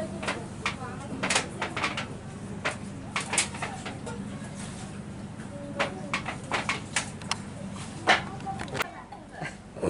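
Metal dishes clink and clatter as they are washed.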